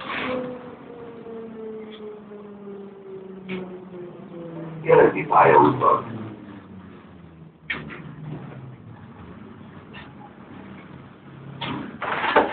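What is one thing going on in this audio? A subway train motor whines as its pitch slowly falls.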